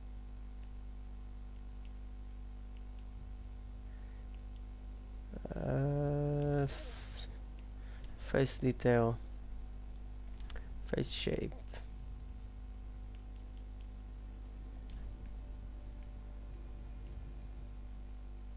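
Soft menu clicks tick as a selection moves.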